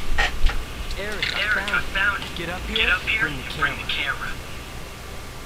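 A man talks on a phone with animation.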